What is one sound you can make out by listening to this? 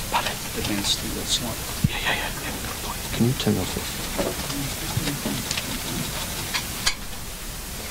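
Paper rustles as a woman handles sheets.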